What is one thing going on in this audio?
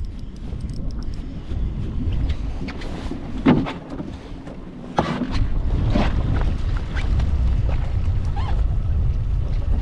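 A fishing reel whirs as its handle is cranked.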